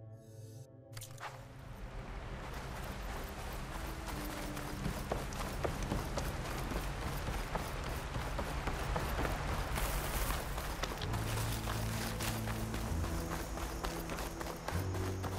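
Footsteps run quickly over sand and earth.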